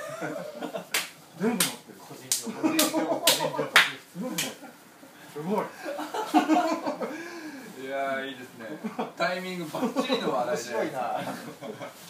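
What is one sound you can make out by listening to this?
Several men talk and laugh together close by.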